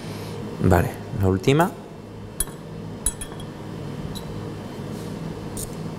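A knife taps and scrapes lightly on a hard surface.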